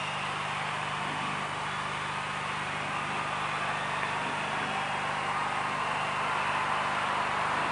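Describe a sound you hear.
A young woman sings along with excitement close by.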